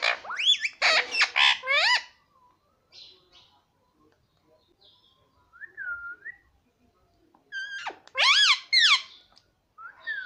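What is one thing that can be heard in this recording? A rose-ringed parakeet chatters, mimicking speech in a shrill voice.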